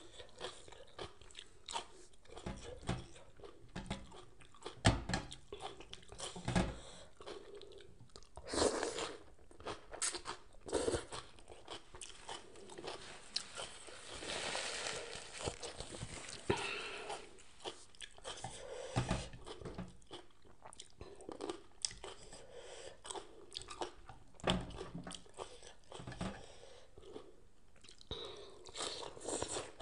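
A woman chews and slurps food noisily, close up.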